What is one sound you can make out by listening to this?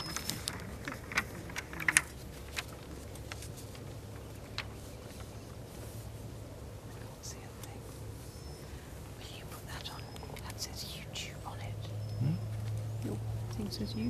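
Several adult men and women murmur and chat softly nearby outdoors.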